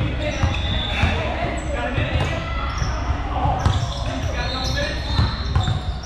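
A basketball bounces on a wooden court, echoing in a large hall.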